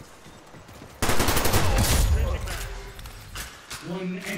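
Rapid gunfire bursts loudly in a video game.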